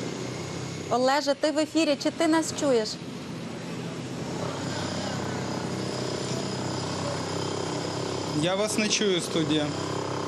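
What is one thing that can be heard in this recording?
A man speaks into a microphone outdoors.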